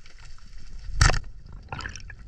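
A speargun fires underwater with a sharp snap.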